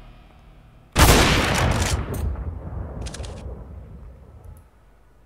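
A rifle shot cracks and echoes away.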